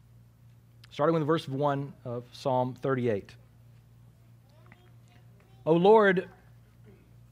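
An elderly man speaks slowly and calmly through a microphone.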